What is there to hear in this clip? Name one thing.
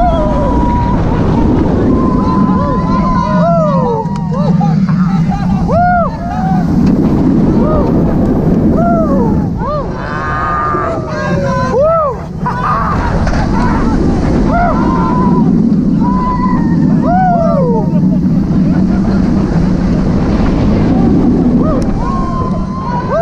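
A roller coaster train rumbles and roars along its track.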